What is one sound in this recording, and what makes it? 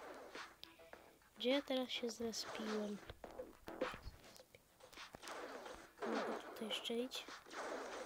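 Game guns fire in short bursts.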